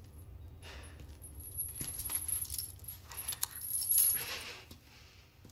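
Metal chains rattle and clink.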